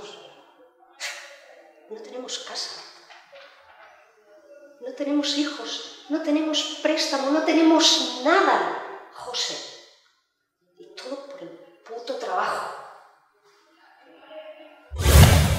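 A middle-aged woman speaks with emotion, close by.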